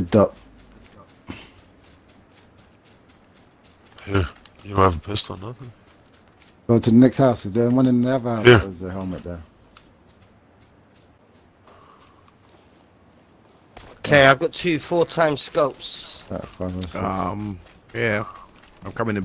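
Footsteps run across grass and dirt.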